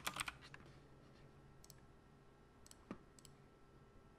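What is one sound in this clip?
A glass clinks softly as it is picked up.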